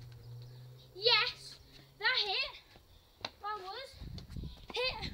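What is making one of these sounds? A young child shouts in high, sing-song calls close by outdoors.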